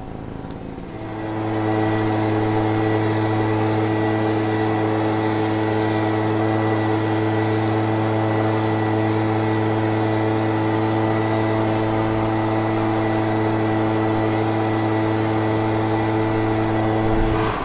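A leaf blower engine starts up and drones steadily close by.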